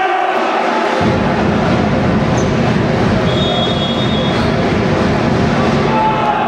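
A crowd of spectators chatters and cheers in the background.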